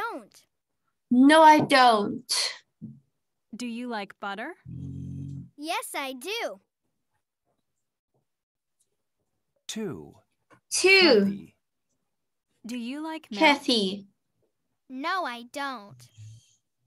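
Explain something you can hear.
A woman speaks with animation over an online call, in short bursts with pauses.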